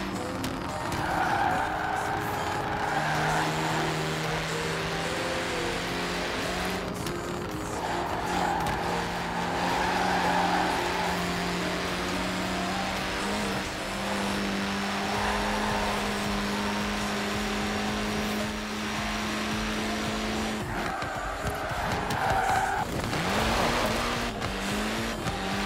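A racing car engine roars at high speed, with its pitch shifting as it slows and speeds up.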